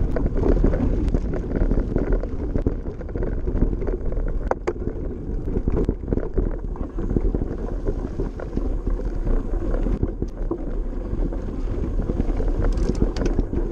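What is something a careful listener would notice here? Wind rumbles against a close microphone outdoors.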